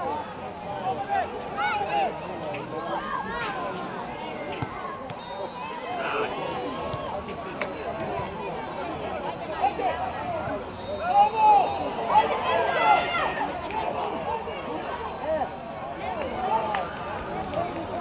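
Children shout excitedly across an open outdoor pitch.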